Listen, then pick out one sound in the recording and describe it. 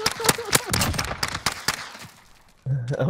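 Gunshots crack rapidly.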